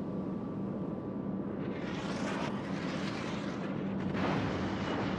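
Water rushes and splashes against a moving ship's hull.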